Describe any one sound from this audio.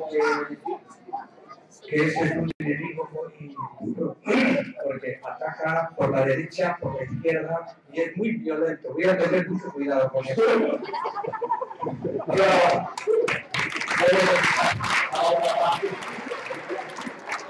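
A crowd of children chatter and call out nearby.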